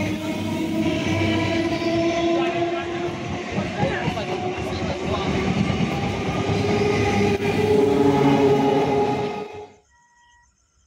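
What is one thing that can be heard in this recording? An electric multiple-unit commuter train rushes past at speed.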